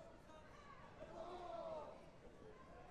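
A crowd cheers loudly for a moment.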